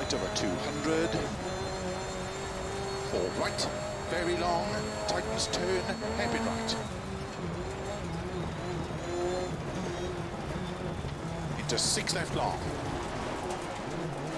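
A rally car engine revs and roars through gear changes.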